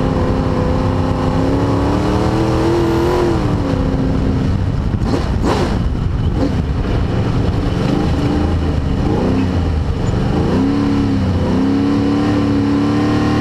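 A race car engine roars loudly from inside the cabin, rising and falling in pitch as it revs and shifts gears.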